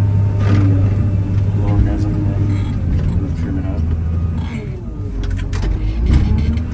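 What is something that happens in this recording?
A heavy diesel engine rumbles steadily up close.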